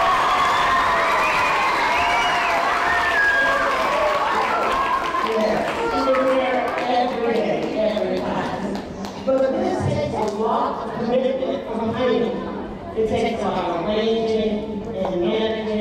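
A large crowd of children chant and shout together in an echoing hall.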